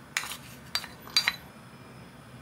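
Chopped vegetables drop from a bowl into a dish with soft taps.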